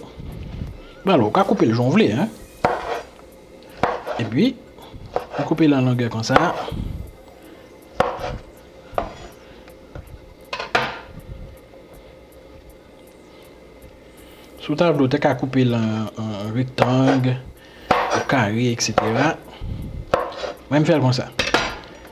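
A knife taps and scrapes on a wooden cutting board.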